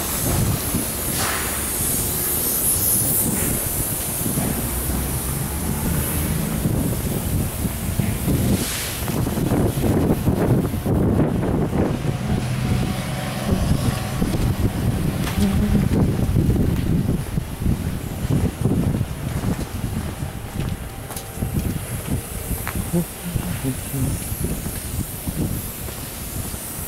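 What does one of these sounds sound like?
Wind gusts outdoors, buffeting close by.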